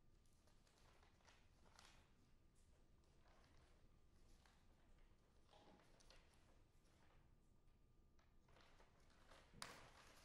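Sheets of paper rustle and flap as pages are turned.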